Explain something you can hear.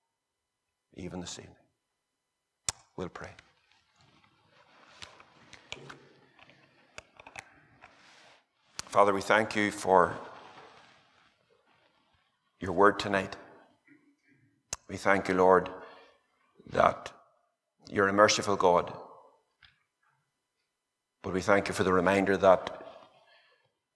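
A middle-aged man speaks slowly and calmly through a microphone, pausing between phrases.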